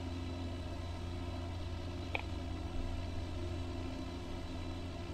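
Jet engines hum steadily with a low, constant drone.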